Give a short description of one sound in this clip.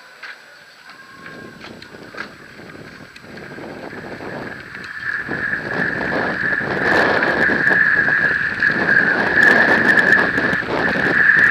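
Wind rushes past, getting stronger with speed.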